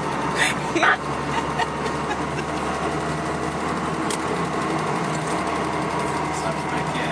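The engine of a Lada Niva drones, heard from inside the cabin.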